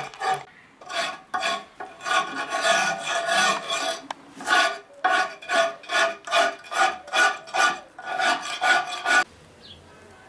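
A metal tool scrapes stone in quick, rhythmic, squeaky strokes.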